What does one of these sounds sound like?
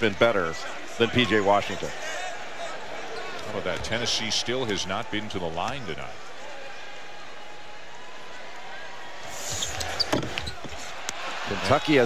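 A large crowd murmurs in a big echoing arena.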